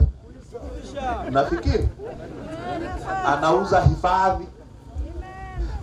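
A crowd of adults talks and calls out loudly outdoors.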